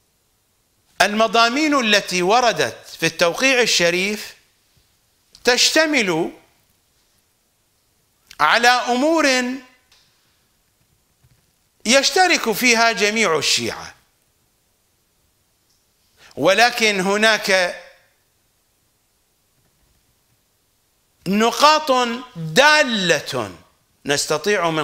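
An older man speaks calmly and deliberately into a close microphone, in short phrases with pauses.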